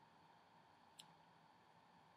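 Scissors snip through hair once.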